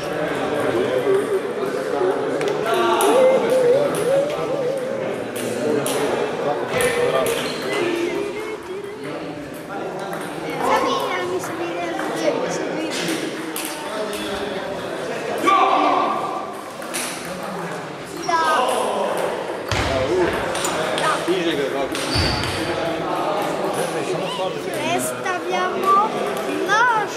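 Table tennis balls click back and forth on tables and paddles in an echoing hall.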